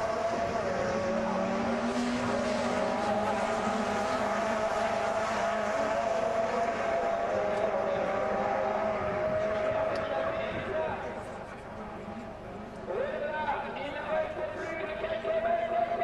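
Racing car engines roar and whine as they speed past.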